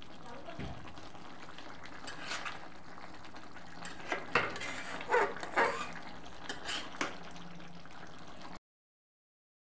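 A metal spatula scrapes and clinks against a metal pan of thick curry.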